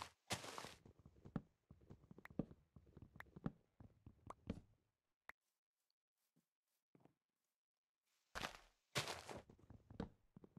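An axe chops at wood with dull, repeated knocks.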